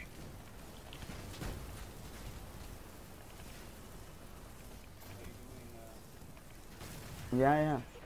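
Explosions boom and crackle with low rumbling.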